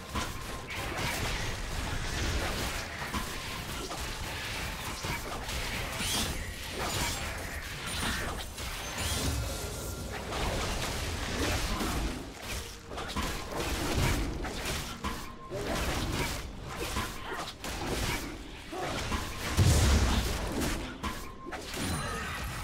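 Spell effects whoosh and clash in a fantasy battle.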